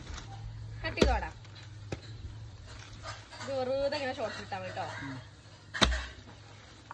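A knife chops with heavy thuds into a fruit.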